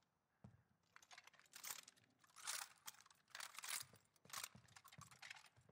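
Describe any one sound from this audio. A rifle is reloaded with metallic clicks and clacks.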